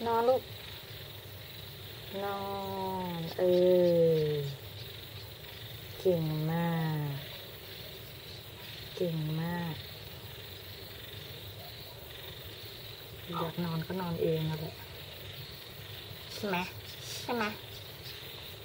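A hen clucks and croons softly close by.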